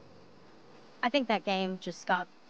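A young woman speaks softly and hesitantly.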